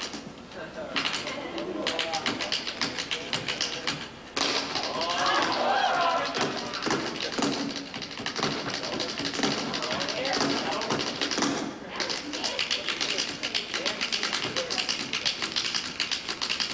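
Tap shoes click and tap quickly on a wooden stage floor.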